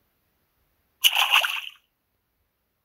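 Lava bursts and splashes with a short whoosh.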